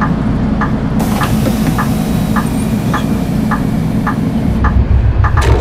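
Bus doors close with a long hiss of air.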